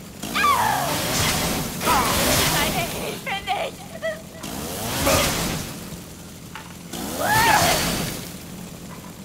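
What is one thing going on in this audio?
A young woman screams in terror.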